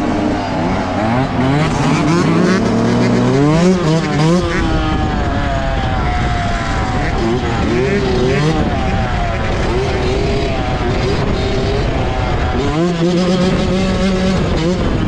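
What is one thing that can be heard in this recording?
Wind buffets against the rider, outdoors.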